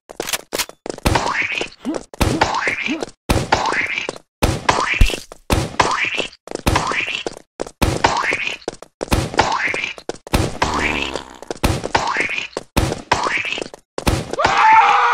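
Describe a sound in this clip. A toy launcher fires again and again with a whooshing, splattering burst.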